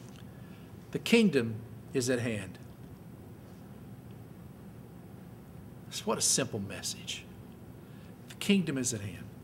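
A man speaks slowly and calmly into a microphone in a large echoing hall.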